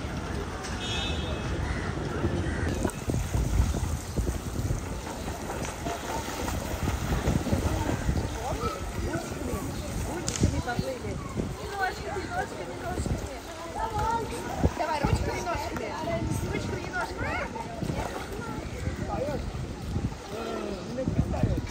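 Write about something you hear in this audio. Water splashes as people move in a pool.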